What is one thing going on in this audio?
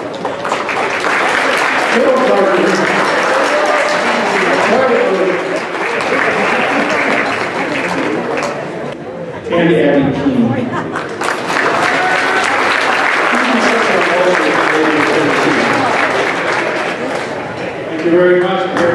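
A man speaks over a loudspeaker in a large echoing hall.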